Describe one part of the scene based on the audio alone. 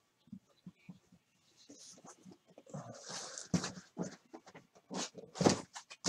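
Cardboard boxes thump and scrape as they are stacked.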